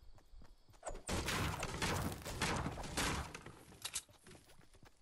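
A pickaxe strikes a wooden fence repeatedly.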